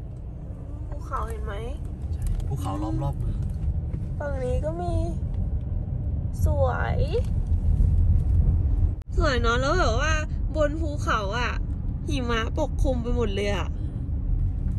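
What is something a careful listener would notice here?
A young man sings close by inside a car.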